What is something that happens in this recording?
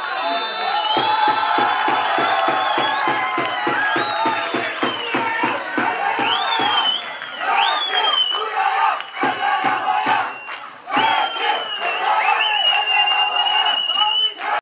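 A crowd of spectators chants and shouts outdoors.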